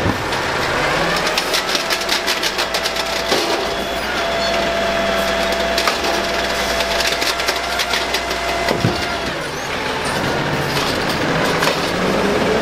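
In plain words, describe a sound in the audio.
A truck's diesel engine idles loudly close by.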